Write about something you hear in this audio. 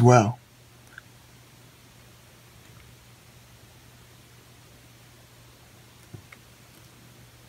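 A small metal tool scrapes lightly on a computer chip.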